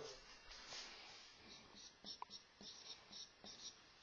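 A marker squeaks across a whiteboard.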